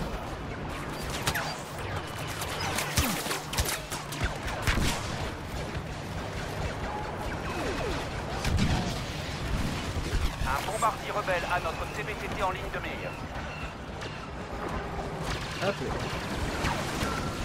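Laser blasters fire in bursts of zapping shots.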